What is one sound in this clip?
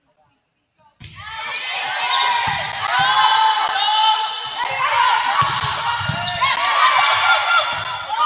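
Spectators cheer and shout in a large echoing gym.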